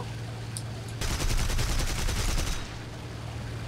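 Aircraft machine guns fire in a rapid burst.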